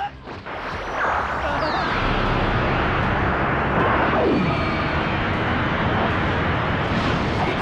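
A huge energy blast roars steadily.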